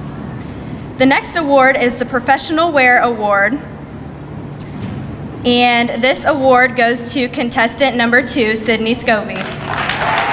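A woman announces over a loudspeaker in a large echoing hall.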